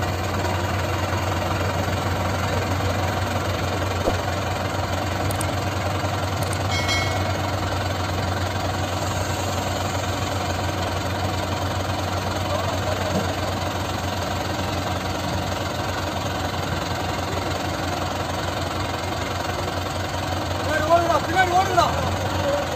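A backhoe loader engine rumbles nearby.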